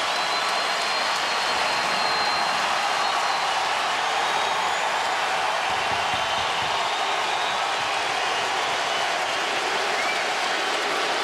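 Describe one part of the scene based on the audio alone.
A large crowd cheers and applauds loudly in a big echoing arena.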